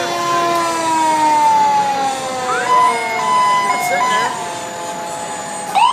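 A fire engine's air horn blares as the truck passes, its pitch sliding lower.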